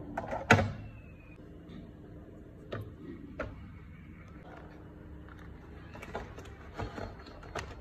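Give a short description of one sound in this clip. Jars and packages knock and clatter against plastic shelves.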